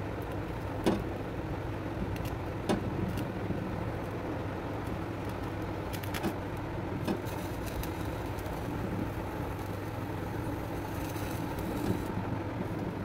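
A gas flame roars steadily.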